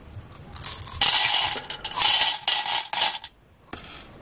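Plastic beads pour and clatter into a metal tray.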